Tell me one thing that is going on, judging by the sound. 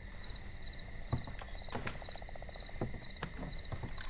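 A chair creaks.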